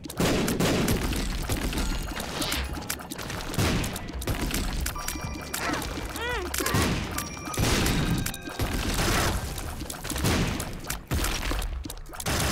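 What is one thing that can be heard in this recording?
Video game shots pop and splat in quick succession.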